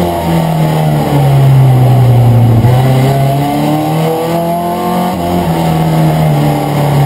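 A race car engine roars loudly from inside the cabin, its pitch rising and falling with gear changes.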